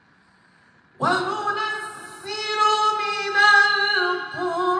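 A man sings loudly through a microphone with a strong, wavering voice.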